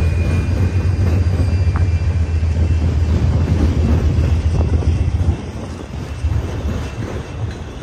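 Metal wheels squeal and clank over the rails.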